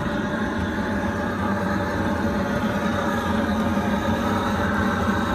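A propane torch roars steadily.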